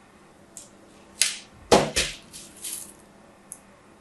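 Crumbled soap pieces crackle and patter as they fall.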